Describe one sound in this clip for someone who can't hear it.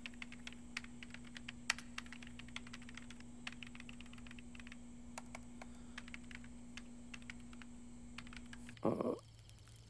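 Fingers tap quickly on a computer keyboard.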